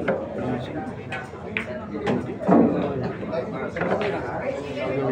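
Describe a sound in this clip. A crowd of young men chatters in the background.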